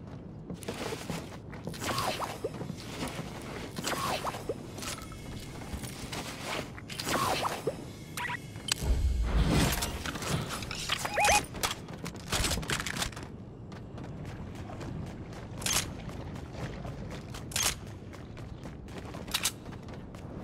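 Video game footsteps patter on a hard floor.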